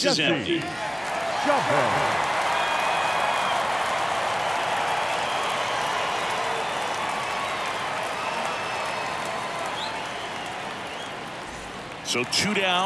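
A large crowd cheers and murmurs in a stadium.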